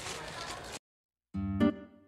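Footsteps crunch on a dirt path.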